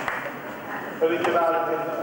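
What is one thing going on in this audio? A middle-aged man speaks calmly into a microphone, heard through loudspeakers in a large echoing hall.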